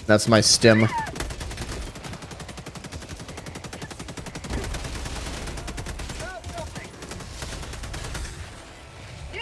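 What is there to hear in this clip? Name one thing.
Gunfire rattles rapidly in a video game.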